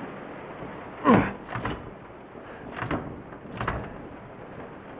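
A hammer knocks hard against a wooden wall.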